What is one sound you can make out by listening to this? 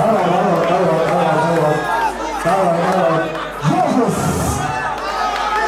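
A crowd of young men cheers and shouts excitedly close by.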